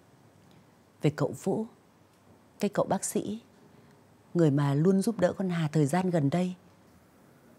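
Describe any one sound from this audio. A middle-aged woman speaks sharply.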